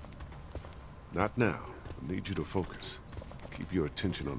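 A man speaks firmly in a low voice.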